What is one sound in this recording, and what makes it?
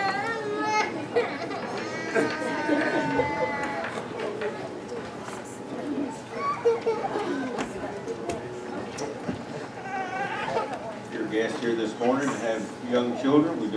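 Several men and women chat at once in a room that echoes a little.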